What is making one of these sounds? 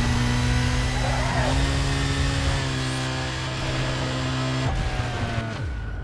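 A car crashes and tumbles with metal crunching.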